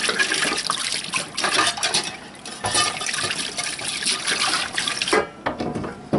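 Water pours from a jug and splashes into a metal sink.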